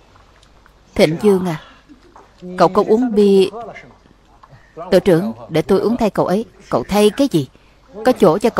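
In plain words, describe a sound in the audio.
A middle-aged man talks loudly and with animation.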